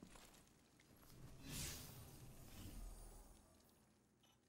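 A rushing whoosh swells and fades.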